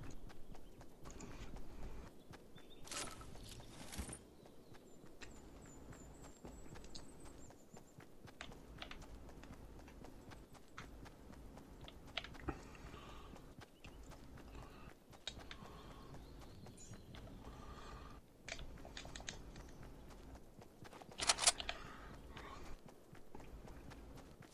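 Footsteps run across grass and stone.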